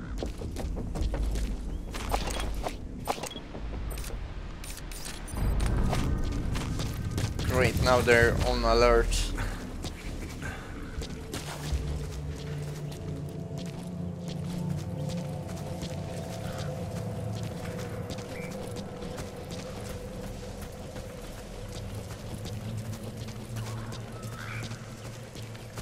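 Footsteps crunch quickly on dry dirt and gravel.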